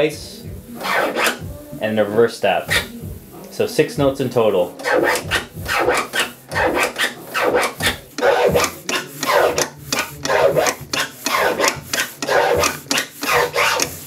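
A mixer fader clicks rapidly.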